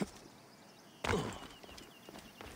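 A heavy body lands with a thud.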